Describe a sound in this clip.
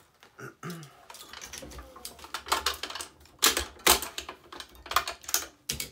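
A racket string rustles and snaps as it is pulled through the frame.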